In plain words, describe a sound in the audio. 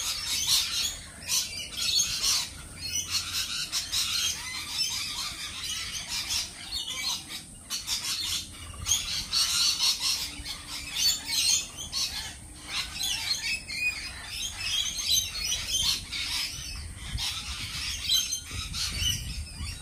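Birds chirp and call all around outdoors.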